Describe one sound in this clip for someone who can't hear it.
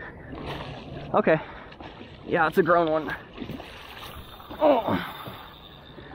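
A large fish splashes at the surface of the water.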